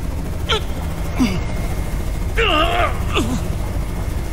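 A man groans and chokes in pain close by.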